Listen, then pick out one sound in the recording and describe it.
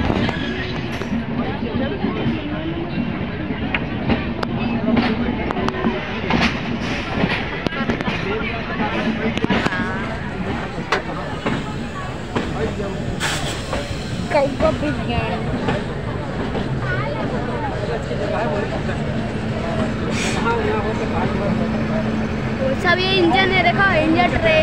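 A train rumbles and clatters steadily over the rails.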